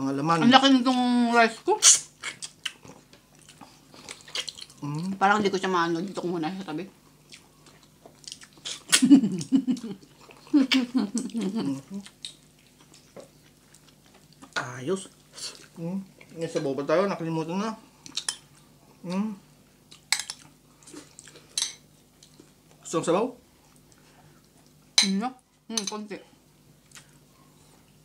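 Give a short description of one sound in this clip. Food squelches and clicks as people chew close to a microphone.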